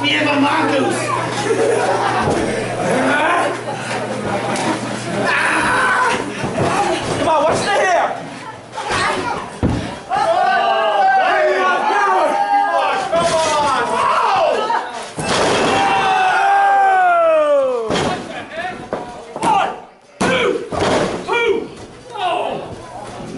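A crowd of men and women cheers and shouts loudly in an echoing hall.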